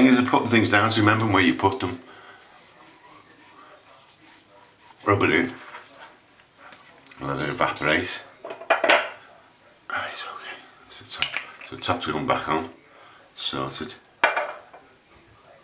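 An older man speaks close to the microphone in short bursts, with pauses between.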